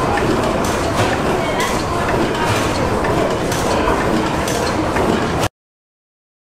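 A large old engine chugs and clatters loudly with a steady rhythm.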